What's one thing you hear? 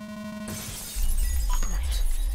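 A figure shatters like breaking glass.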